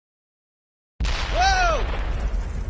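A fiery explosion roars loudly.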